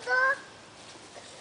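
A young child calls out briefly nearby.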